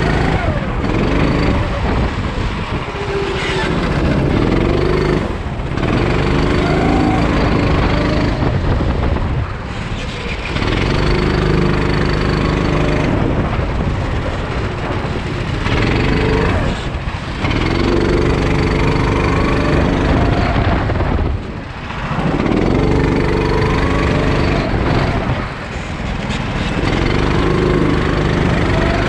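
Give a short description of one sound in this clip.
A kart engine whines loudly up close, rising and falling as it speeds up and slows for corners.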